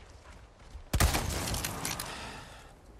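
A gun fires a single loud shot.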